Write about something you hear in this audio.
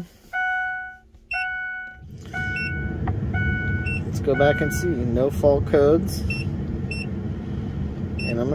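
An electronic device beeps as its buttons are pressed.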